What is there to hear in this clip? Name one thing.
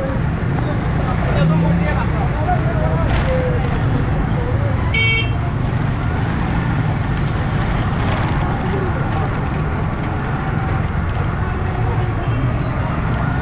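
Motor rickshaw engines putter along a busy street.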